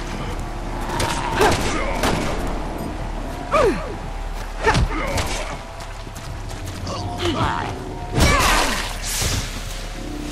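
Heavy blows land with loud thuds.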